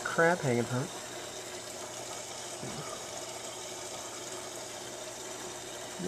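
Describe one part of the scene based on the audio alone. Water bubbles and hums softly in an aquarium.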